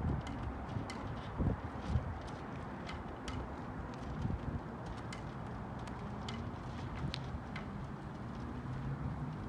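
A flag flaps and snaps in the wind.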